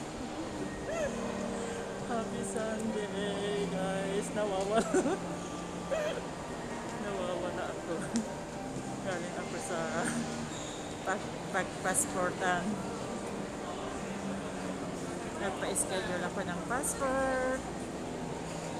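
A young woman talks close to the microphone, muffled through a face mask.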